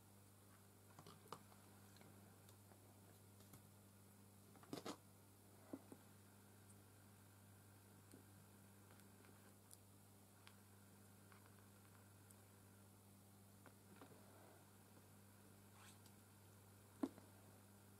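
Small objects click and tap lightly on a hard surface.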